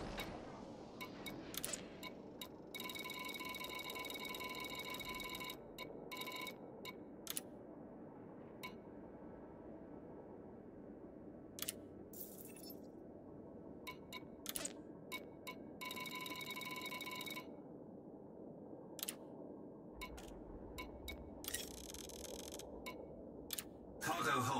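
Short electronic clicks and beeps sound as menu options are chosen.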